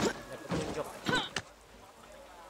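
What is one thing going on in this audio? Hands grab and scrape onto a ledge.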